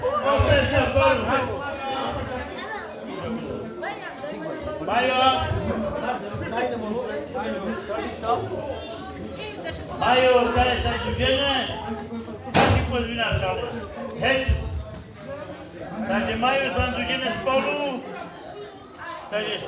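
A crowd of men chatter and murmur nearby in an echoing hall.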